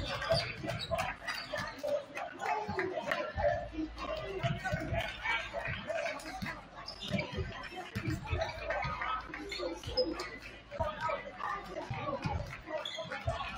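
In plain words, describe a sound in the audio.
Basketballs bounce on a wooden court, echoing in a large hall.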